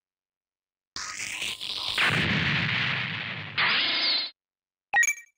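A sweeping electronic whoosh swells and then cuts off.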